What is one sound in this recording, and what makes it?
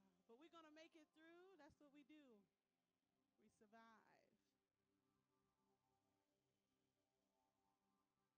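An electric guitar plays soft, sustained notes.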